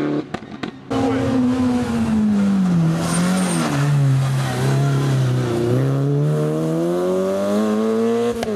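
A rally car engine roars loudly, dropping in pitch and then revving up again as the car passes.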